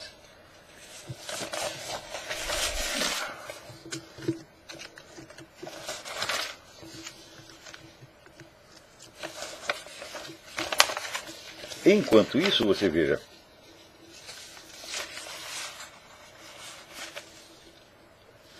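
Papers rustle and shuffle as they are handled.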